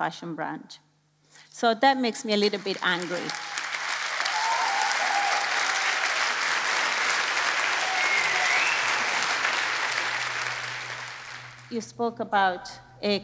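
A woman speaks calmly through a microphone in a large hall.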